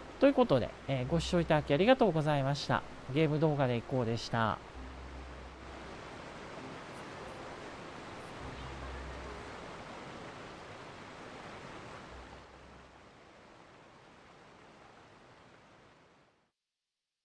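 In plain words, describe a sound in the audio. A waterfall rushes and roars steadily.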